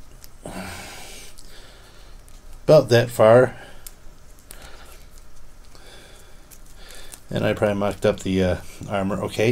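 Small plastic parts click and tap as a toy figure is handled up close.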